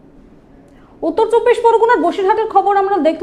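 A young woman speaks clearly and steadily into a microphone.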